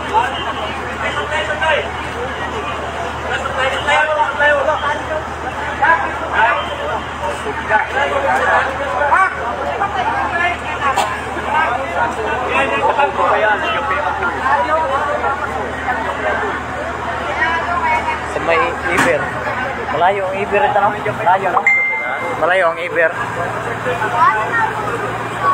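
A crowd of men talk and shout loudly close by, outdoors.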